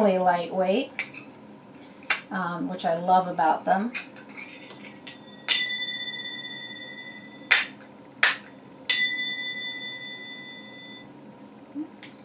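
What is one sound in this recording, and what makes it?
Small finger cymbals clink together and ring out brightly.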